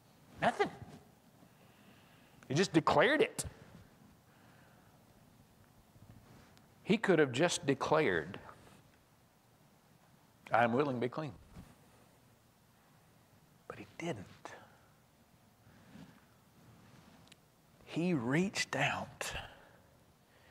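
A man speaks through a microphone in short bursts with long pauses.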